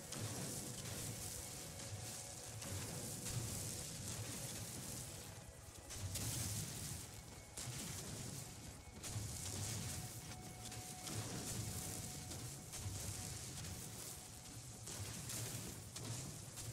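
A mining laser hums and crackles steadily against rock.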